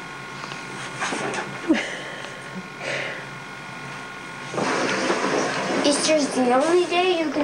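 A young boy talks and laughs excitedly close by.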